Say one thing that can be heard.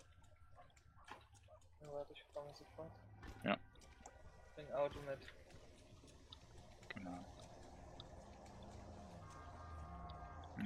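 Footsteps slap quickly on wet pavement.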